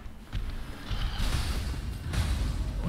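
A sword strikes a monster with a heavy hit.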